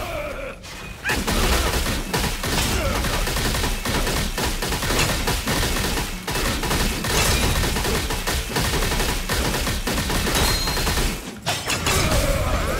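Metal blades clash and clang with sparks in a fast fight.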